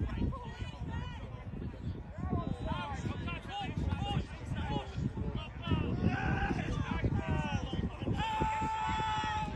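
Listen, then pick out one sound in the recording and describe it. Men shout and call out across an open field.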